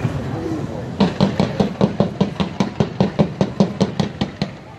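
A fireworks fountain crackles in rapid pops.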